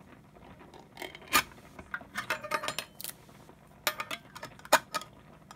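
A ring-pull can lid clicks and scrapes as it is pried open.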